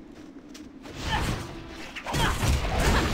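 A magic blast whooshes and rings out.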